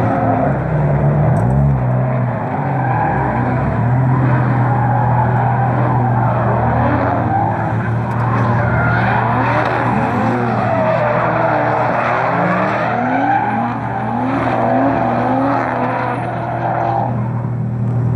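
Car engines roar and rev hard, rising and falling in pitch.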